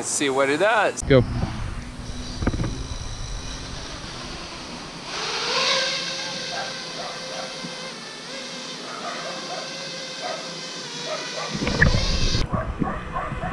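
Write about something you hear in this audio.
A small drone's propellers whir and buzz as it flies.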